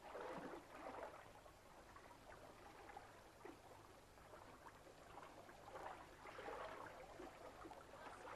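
Water splashes as people wade through a river.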